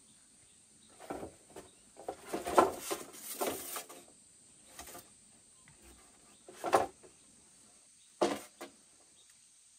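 Dry branches rustle and scrape as they are dragged.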